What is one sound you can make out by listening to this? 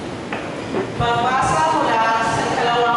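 A woman sings into a microphone, amplified through loudspeakers.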